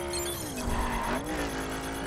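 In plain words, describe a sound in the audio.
Tyres screech as a car slides through a bend.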